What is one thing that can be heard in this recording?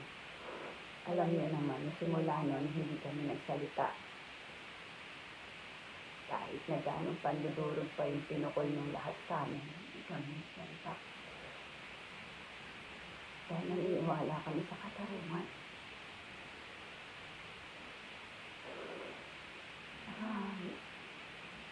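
A woman speaks close to a phone microphone in short, calm bursts with pauses.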